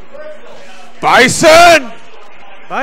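A man shouts excitedly close by.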